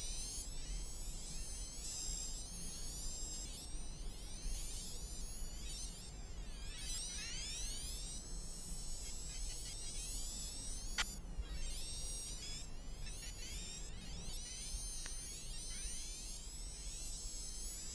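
A small electric racing car's motor whines high, rising and falling as it speeds up and slows down.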